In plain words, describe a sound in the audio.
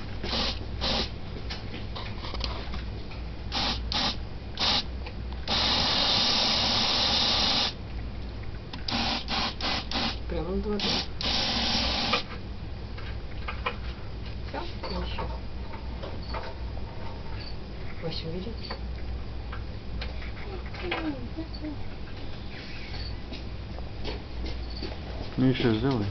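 A small animal chews and crunches on its food up close.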